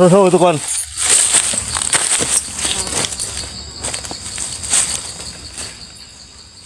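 Dry palm leaves rustle and crackle underfoot.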